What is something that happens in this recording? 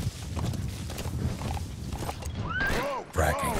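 A horse's hooves thud along the ground at a gallop.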